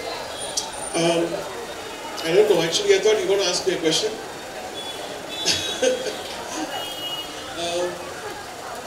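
A man speaks through a microphone over loudspeakers.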